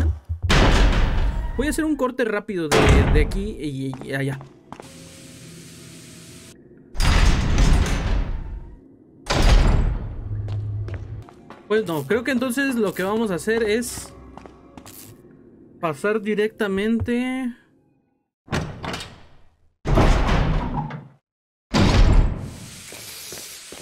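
Heavy doors open with a loud creak and thud.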